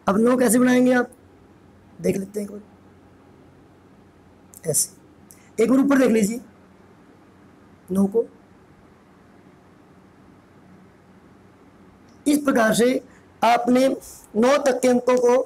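A man speaks clearly in short phrases with pauses, close by.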